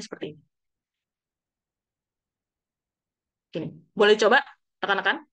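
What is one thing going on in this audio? A young woman speaks calmly through an online call, with short pauses.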